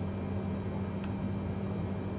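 A switch clicks once.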